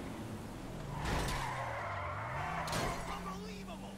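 Tyres screech loudly as a car skids through a turn.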